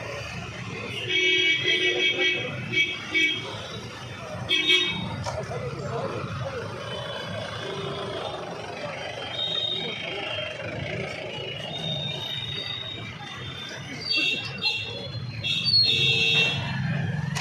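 Vehicle horns honk repeatedly.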